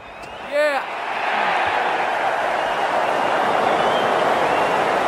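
A crowd cheers loudly in a stadium.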